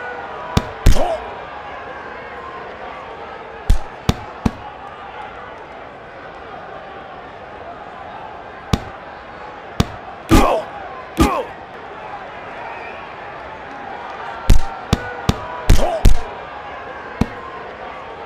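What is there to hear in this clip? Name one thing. Punches land with sharp thuds.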